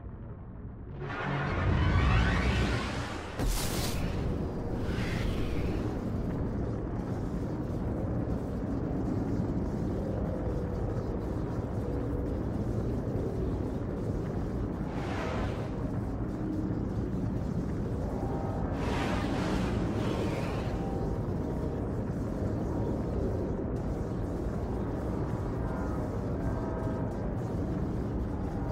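Spaceship engines roar steadily.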